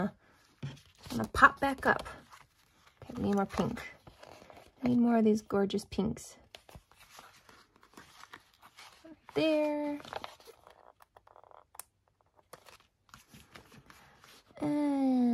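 Paper rustles and crinkles as stiff pages are handled.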